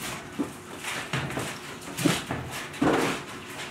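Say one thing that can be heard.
A hand stirs thick wet plaster in a bucket with soft squelching.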